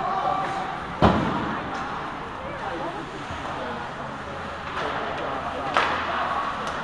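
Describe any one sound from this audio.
A hockey stick cracks against the puck.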